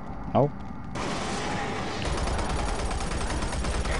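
A gun fires rapidly.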